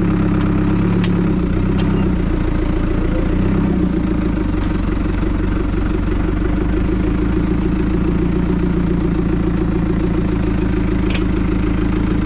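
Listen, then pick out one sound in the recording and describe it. A metal implement rattles and clanks now and then.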